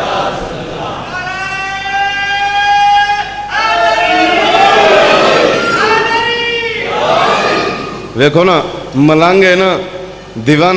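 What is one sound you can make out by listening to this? A man sings loudly with a long wavering voice through a microphone and loudspeakers.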